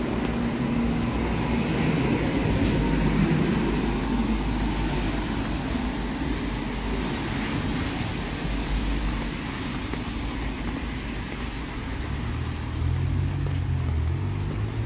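Car tyres hiss by on a wet street.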